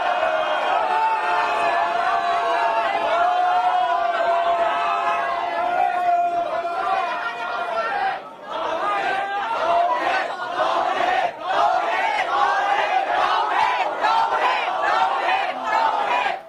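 A large crowd shouts and chants loudly in an echoing hall.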